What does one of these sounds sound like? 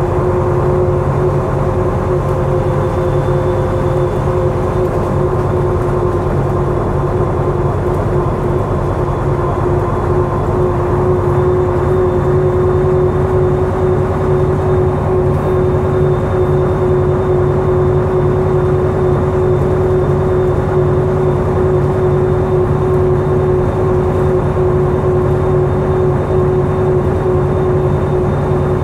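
An old engine drones steadily as a vehicle drives along.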